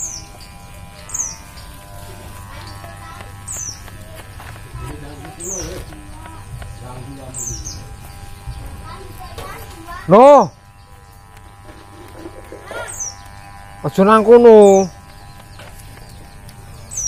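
An electric hair clipper hums steadily close by.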